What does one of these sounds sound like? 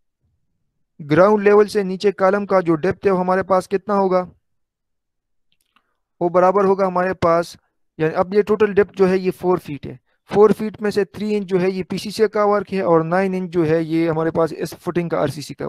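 A young man talks steadily and calmly into a microphone, heard as if over an online call.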